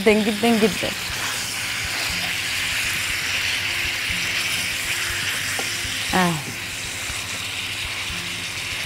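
Metal tongs clink against the pan as pieces are turned.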